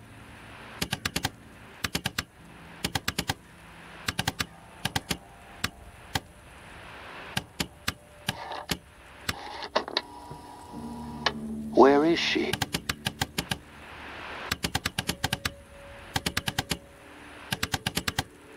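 A radio dial clicks quickly in bursts as it is turned.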